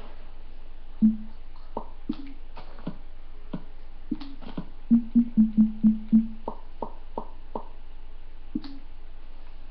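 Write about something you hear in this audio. Game menu clicks pop from a small tablet speaker.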